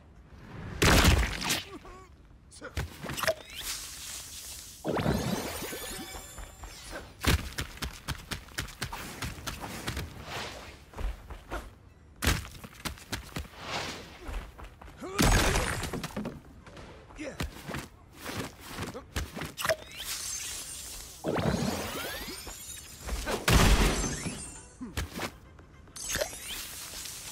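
Game sound effects chime and whoosh throughout.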